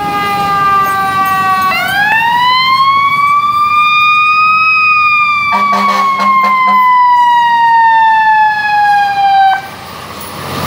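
A fire engine siren wails loudly nearby, rising and then falling in pitch.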